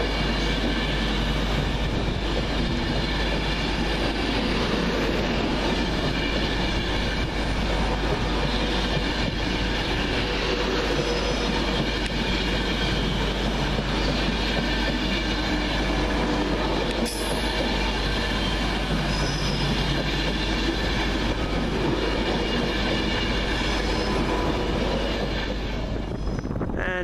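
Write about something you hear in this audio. An electric express train speeds past on the rails.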